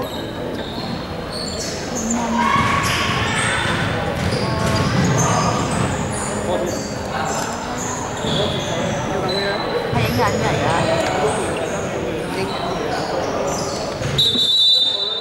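Several young men chat with one another in a large echoing hall.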